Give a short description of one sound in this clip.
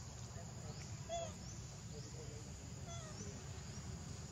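A young monkey gives short high squeaks.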